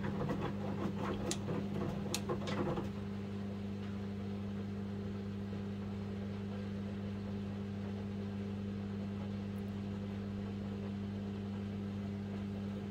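A front-loading washing machine hums.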